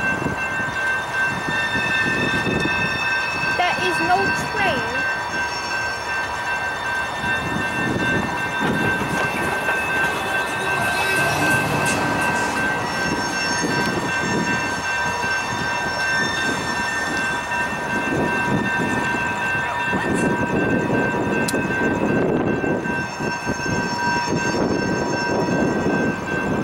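Train wheels squeal on a curve.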